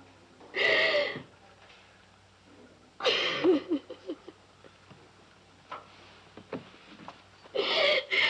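A woman sobs and wails loudly close by.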